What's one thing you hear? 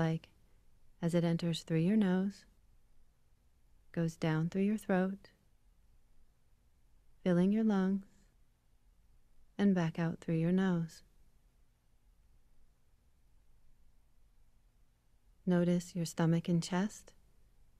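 A woman speaks slowly and calmly over an online call, in short phrases with long pauses.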